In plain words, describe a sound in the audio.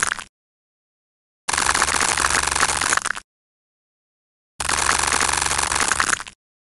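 A knife slices through soap with a crunching sound.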